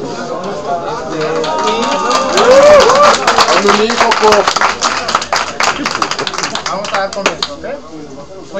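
A crowd of young people cheers and laughs loudly.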